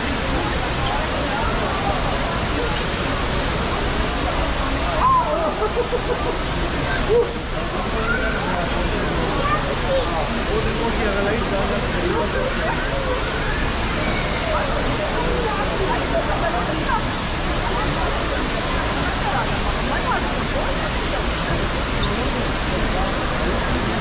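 A crowd chatters and murmurs throughout a large echoing hall.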